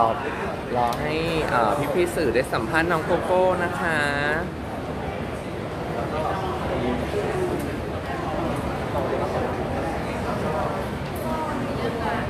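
A young woman speaks calmly into a microphone close by.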